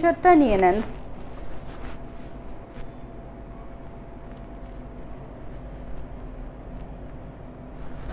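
Fabric rustles as it is lifted and draped.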